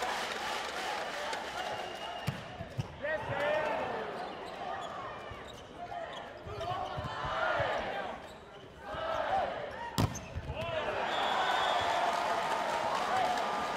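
A large crowd cheers and chants in an echoing hall.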